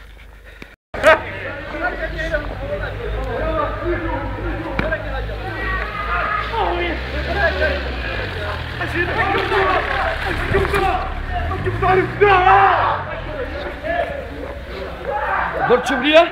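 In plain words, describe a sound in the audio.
Young people shout and laugh excitedly outdoors.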